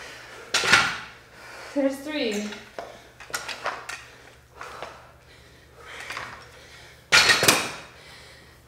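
Dumbbells knock against a hard floor.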